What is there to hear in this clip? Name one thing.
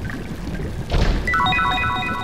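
A chest lid bangs open.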